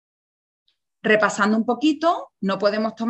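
A young woman speaks calmly into a microphone, as if on an online call.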